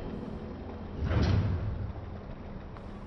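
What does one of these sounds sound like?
A shimmering whoosh of energy swells and fades.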